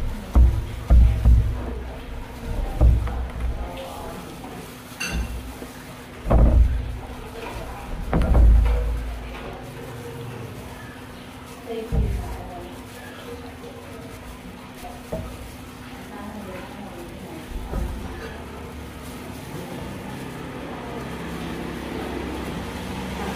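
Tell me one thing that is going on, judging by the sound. Plastic gloves crinkle as food is torn by hand.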